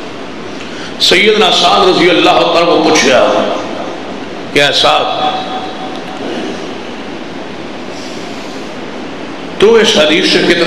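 A middle-aged man speaks passionately into a microphone, heard over a loudspeaker.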